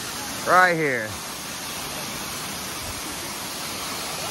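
A waterfall roars steadily, splashing onto rocks.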